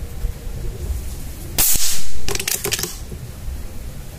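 A pellet strikes a metal target with a ringing clang.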